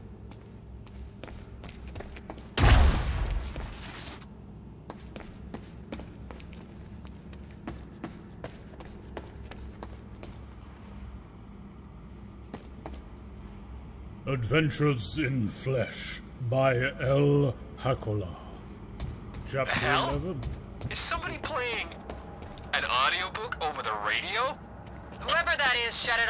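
Footsteps patter quickly on a hard floor in a large echoing space.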